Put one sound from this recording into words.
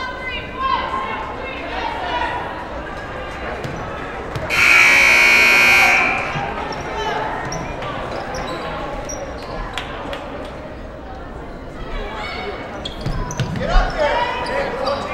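Spectators and players shout and call out in an echoing gym.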